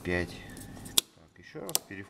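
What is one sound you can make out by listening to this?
A circuit breaker switch clicks sharply.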